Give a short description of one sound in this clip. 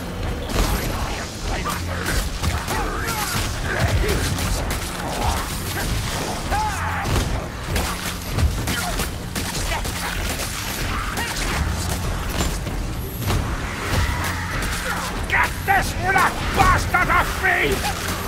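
Weapons slash and thud into creatures.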